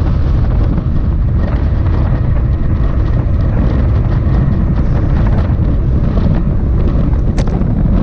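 Strong wind rumbles loudly past a moving bike.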